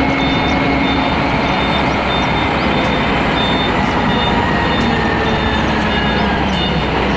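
A heavy truck's diesel engine rumbles steadily close by.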